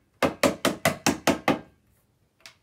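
A spray can rattles as it is shaken quickly.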